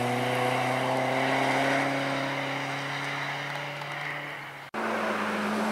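A car engine drones in the distance.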